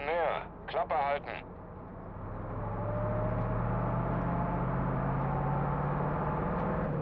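A truck engine hums low and steadily grows louder.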